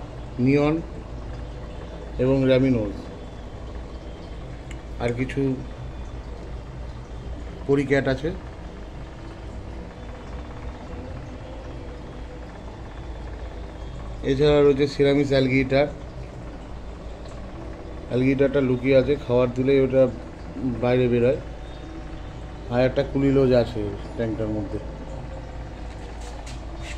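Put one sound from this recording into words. An aquarium filter hums steadily and low.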